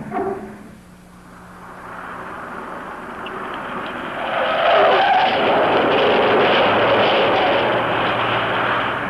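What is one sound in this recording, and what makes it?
A car engine hums as a car drives along a road.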